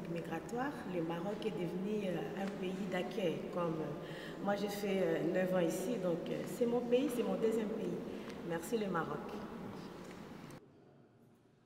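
A woman speaks with animation into a microphone, close by.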